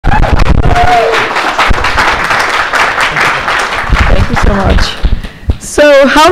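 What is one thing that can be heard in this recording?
A crowd cheers and applauds in a large room.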